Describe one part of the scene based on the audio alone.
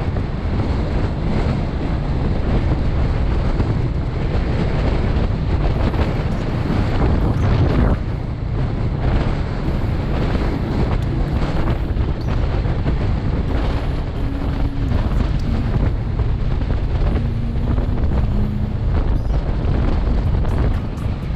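Strong wind roars past the rider.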